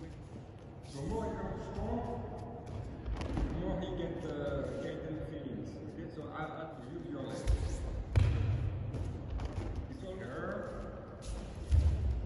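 An elderly man speaks calmly in an echoing hall.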